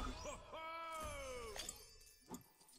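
Coins jingle with bright chiming tones as they are picked up.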